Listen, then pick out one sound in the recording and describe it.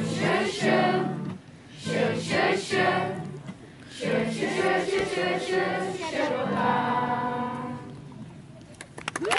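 Children sing together.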